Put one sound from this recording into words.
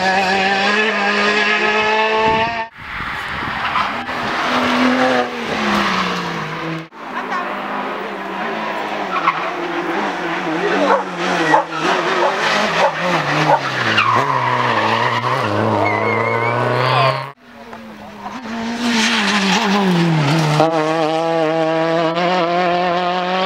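A rally car engine roars at high revs and shifts gears as the car speeds past.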